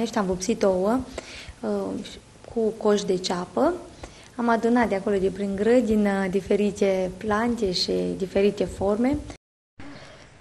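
A woman speaks calmly and with animation into a nearby microphone.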